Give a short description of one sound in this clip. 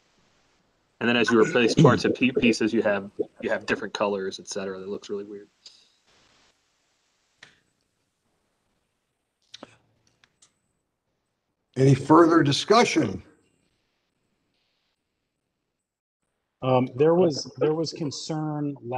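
Men talk calmly over an online call, taking turns.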